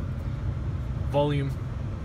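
A button on a steering wheel clicks softly under a finger press.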